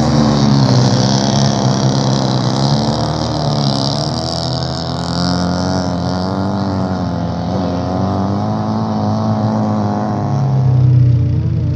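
A car engine roars and revs loudly nearby.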